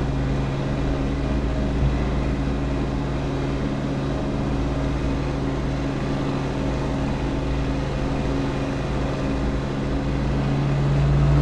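An aircraft engine drones steadily, swelling louder near the end.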